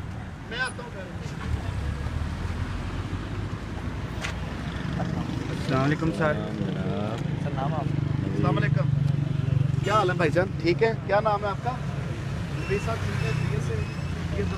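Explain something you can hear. A car engine idles close by.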